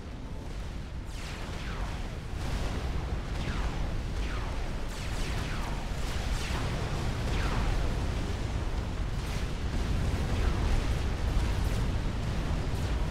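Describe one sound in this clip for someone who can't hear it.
Laser weapons fire with quick falling zaps.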